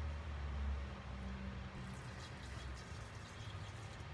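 Oil pours from a plastic bottle onto a powdery mixture.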